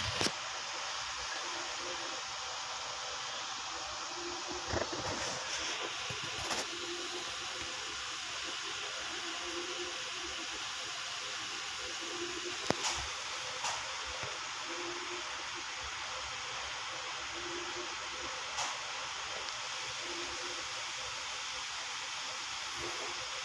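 An electric fan whirs steadily nearby.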